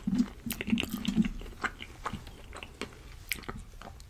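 A fork scrapes and clicks against a plate close to a microphone.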